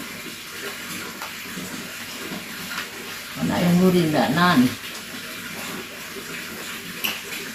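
Spoons and fingers clink softly against dishes.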